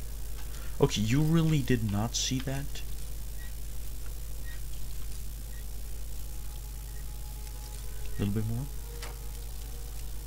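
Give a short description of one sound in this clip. A metal lock pick scrapes and clicks inside a lock.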